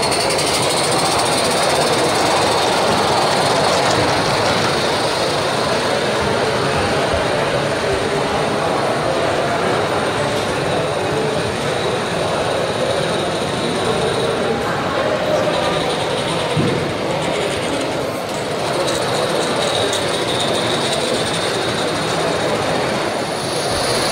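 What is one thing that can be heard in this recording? A small model train rumbles and clatters along the track.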